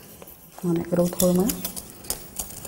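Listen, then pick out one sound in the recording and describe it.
A woman speaks briefly and clearly, close by.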